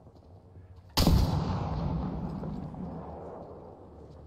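A rifle fires a single loud shot that rings out and fades.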